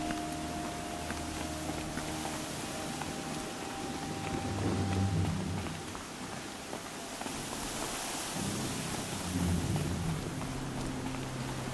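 Footsteps run over dirt and stone.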